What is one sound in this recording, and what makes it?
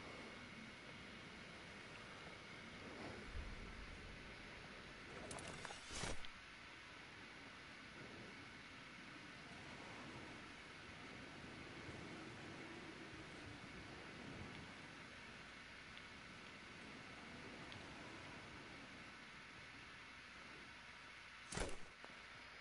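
Wind rushes steadily past during a long glide.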